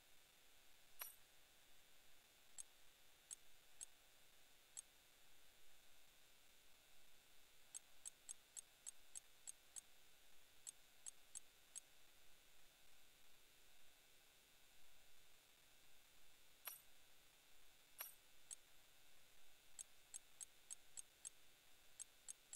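Short, high menu ticks click in quick runs as a selection moves through a list.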